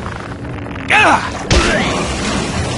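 A body splashes heavily into water.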